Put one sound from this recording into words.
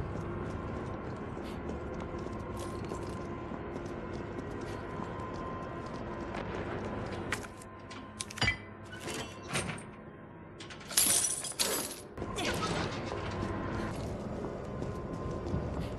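Footsteps walk on hard ground.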